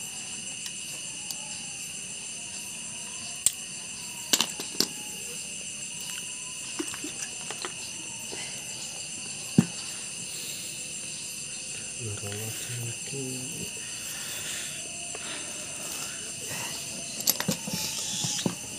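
Metal parts click and clack as a small engine is taken apart by hand.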